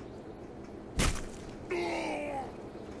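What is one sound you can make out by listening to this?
Glass shatters and rains down.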